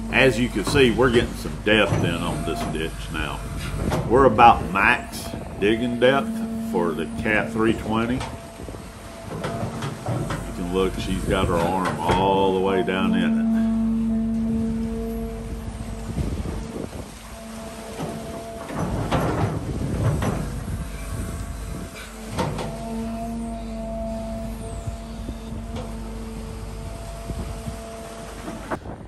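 An excavator engine rumbles steadily close by.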